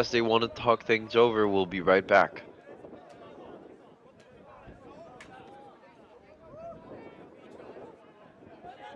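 Young men talk and call out to each other outdoors at a distance.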